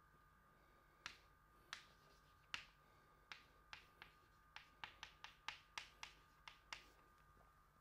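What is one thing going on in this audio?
Chalk taps and scrapes on a blackboard in short, quick strokes.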